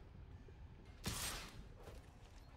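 A soft game whoosh sounds as a card slides into place.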